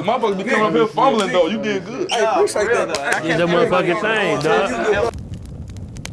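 A crowd of young men and women talk loudly and shout over each other nearby.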